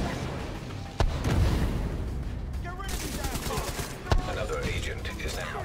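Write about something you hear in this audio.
An explosion booms with crackling fire.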